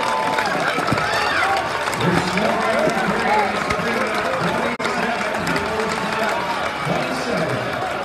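People clap their hands close by.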